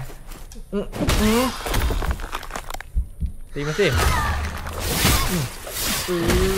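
Blades clash and thud in a fight.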